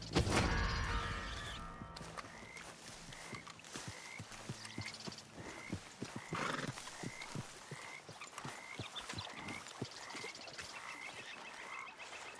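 Footsteps walk steadily across grass.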